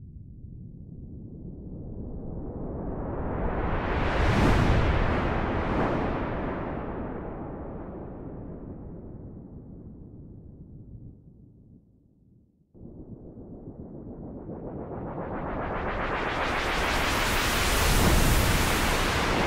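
A synthesizer noise sweep swells up, fades away, cuts out and swells again.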